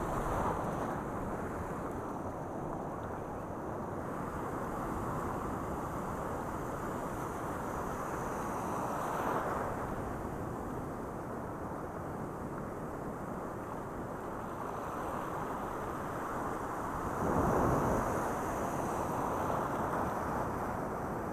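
Wind rushes loudly and steadily past, outdoors.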